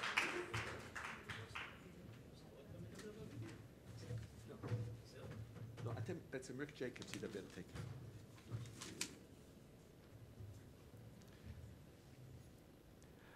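A middle-aged man speaks calmly into a microphone in a large hall.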